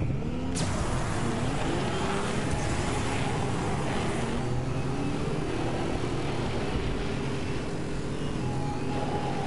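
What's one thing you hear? Racing vehicles whine and roar as they speed along a track.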